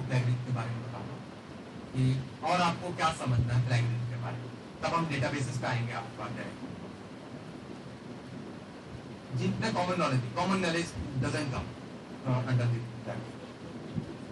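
A man speaks to an audience through a microphone, with pauses, in a room that echoes slightly.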